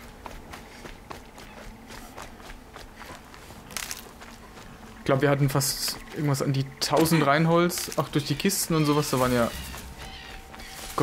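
Footsteps crunch softly on the forest floor.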